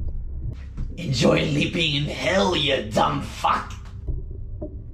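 A young man laughs and talks with animation close by.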